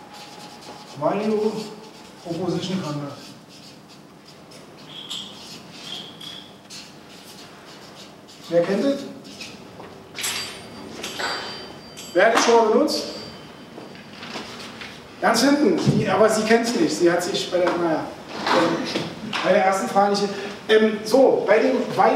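A man speaks with animation to a room.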